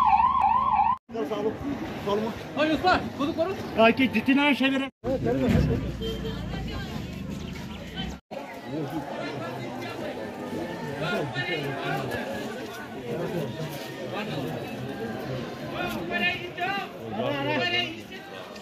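A crowd of men murmurs and talks outdoors.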